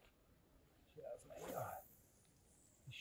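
A fishing rod swishes through the air as a line is cast.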